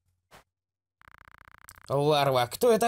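Rapid soft electronic ticks sound as game text scrolls out.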